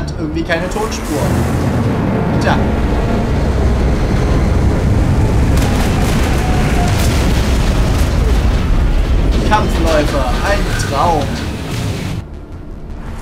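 A large flying craft roars overhead.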